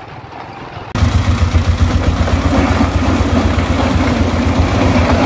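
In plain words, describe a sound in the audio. A small tractor engine idles loudly with a steady rattle.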